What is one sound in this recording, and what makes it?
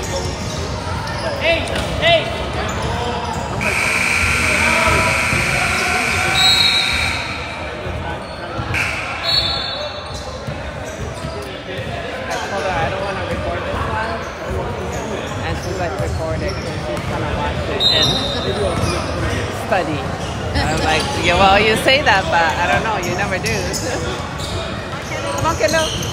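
A basketball thumps as it bounces on a wooden floor.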